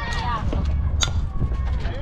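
A bat cracks against a softball.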